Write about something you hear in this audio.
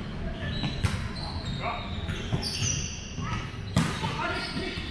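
A volleyball is struck with sharp slaps in a large echoing hall.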